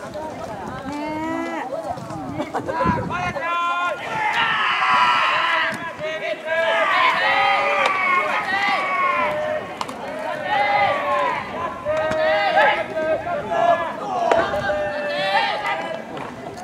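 Young boys shout calls across an open field.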